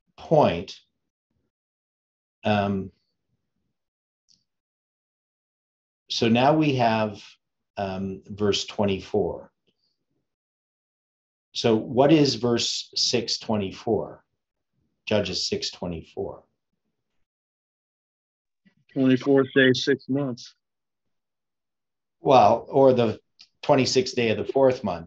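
An older man speaks calmly and close to a microphone, in short phrases with pauses.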